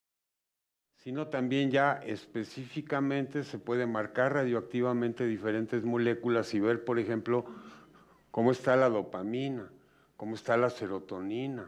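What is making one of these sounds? An elderly man speaks calmly and with emphasis into a microphone.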